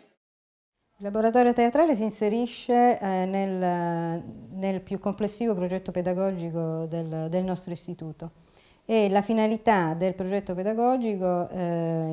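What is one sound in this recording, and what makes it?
A middle-aged woman speaks calmly, close to the microphone.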